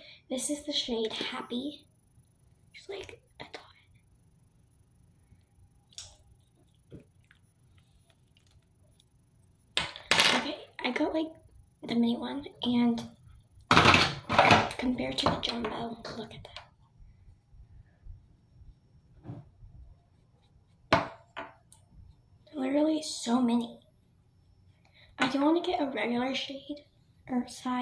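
A young girl talks calmly and close by, in short bursts.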